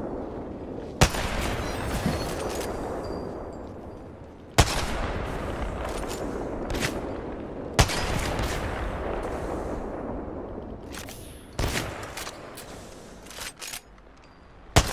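A sniper rifle fires single loud shots that echo and rumble away.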